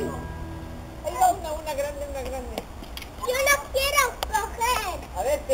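Young children shout and call out excitedly outdoors.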